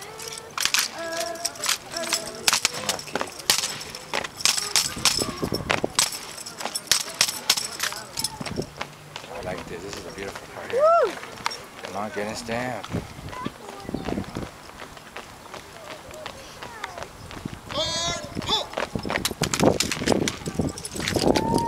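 Drill rifles clack as hands slap and catch them.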